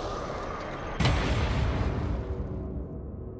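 A body hits the ground with a heavy thud.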